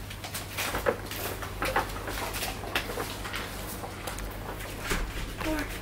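Bare feet patter on foam mats.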